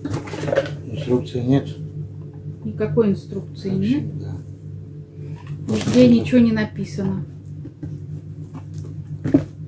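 A cardboard box rustles and thumps as it is handled.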